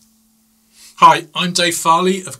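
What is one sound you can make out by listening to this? A middle-aged man speaks calmly and close to the microphone.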